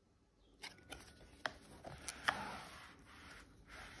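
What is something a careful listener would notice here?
A stiff cardboard page flips over with a soft rustle.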